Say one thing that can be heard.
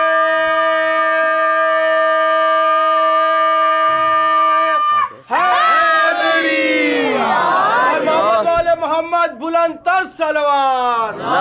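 A young boy sings loudly nearby, holding a long note and then sliding through a wavering melody.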